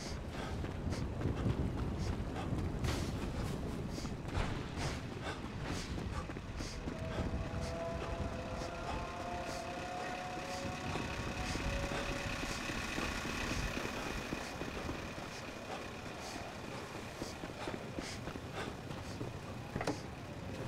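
Footsteps run quickly over a dirt road.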